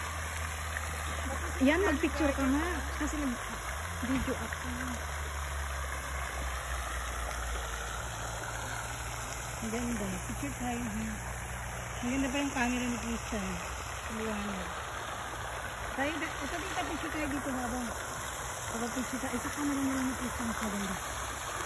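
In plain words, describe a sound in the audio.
Water from a fountain splashes into a pond.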